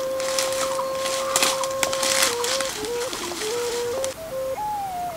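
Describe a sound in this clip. A knife chops at wood with quick, sharp knocks.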